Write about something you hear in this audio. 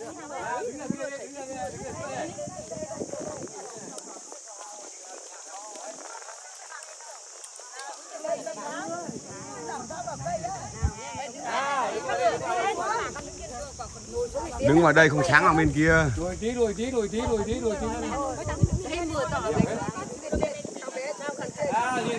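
A group of middle-aged women chat and call out to one another outdoors.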